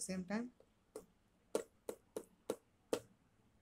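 A small button clicks as a finger presses it.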